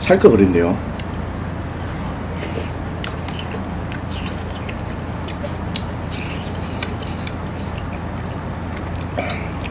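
A man chews and smacks on sticky food close to a microphone.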